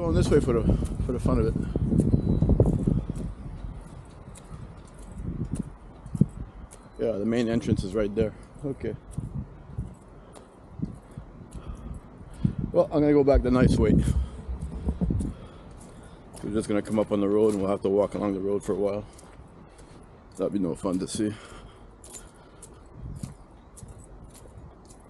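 Footsteps scuff along a paved path.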